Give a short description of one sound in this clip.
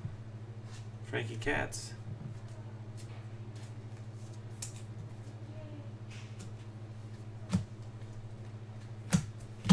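Cards shuffle and slide against each other in hands.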